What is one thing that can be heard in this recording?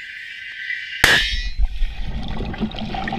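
A blast booms underwater.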